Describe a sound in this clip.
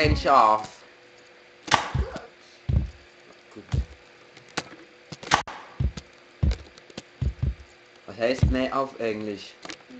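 A pogo stick bounces with repeated dull thumps.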